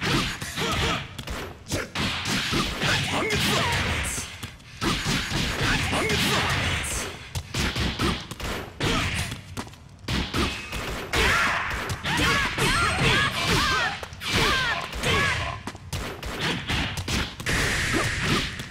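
Punches and kicks land with sharp smacking thuds.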